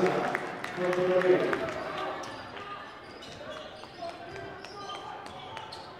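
A basketball bounces on a hardwood floor as a player dribbles.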